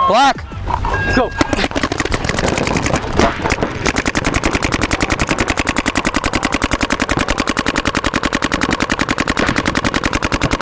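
Paintball markers fire in rapid, steady bursts of pops.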